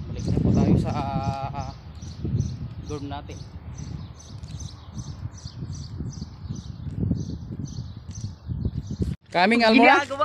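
A young man talks casually outdoors, close by.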